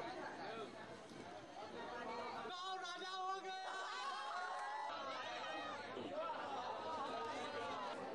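A crowd of men talk and chatter excitedly nearby.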